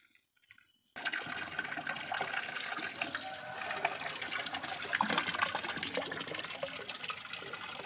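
Water pours from a tap into a metal tub.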